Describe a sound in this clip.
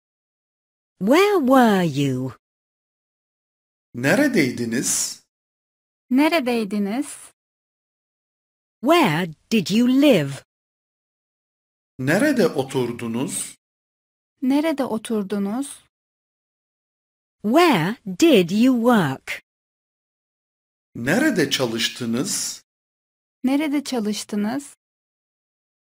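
A teenage boy reads out through a microphone in short phrases, with pauses between them.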